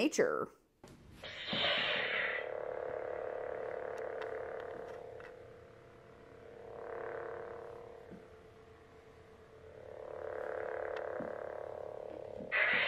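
A toy lightsaber ignites with a burst and then hums steadily, swelling as it moves.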